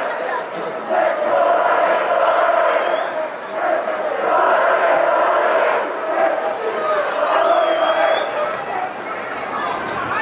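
A large crowd chants and cheers loudly in an open stadium.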